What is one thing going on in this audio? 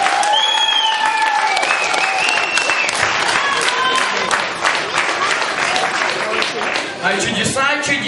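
An audience claps loudly in a hall.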